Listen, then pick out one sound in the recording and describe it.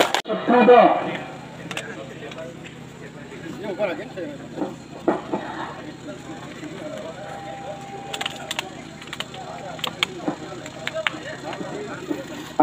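A crowd chatters quietly.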